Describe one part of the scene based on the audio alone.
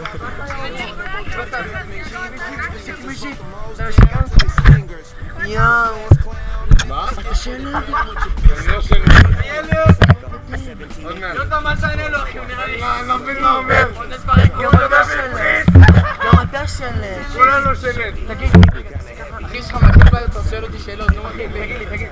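Young men talk and shout excitedly close by, outdoors.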